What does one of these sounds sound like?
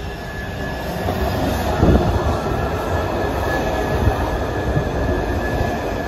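Train wheels squeal and clatter on the tracks.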